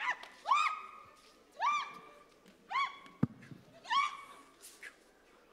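A woman shrieks loudly several times.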